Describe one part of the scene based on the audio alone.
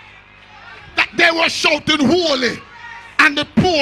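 An elderly man preaches loudly and with animation into a microphone, in an echoing hall.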